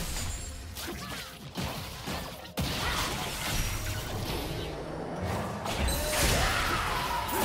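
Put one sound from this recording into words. Game spells whoosh and crackle in a fight.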